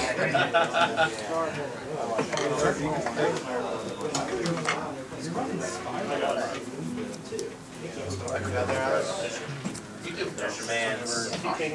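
Cards riffle softly as they are shuffled in hand.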